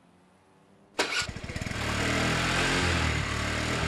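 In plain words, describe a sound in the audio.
A scooter engine starts and hums steadily.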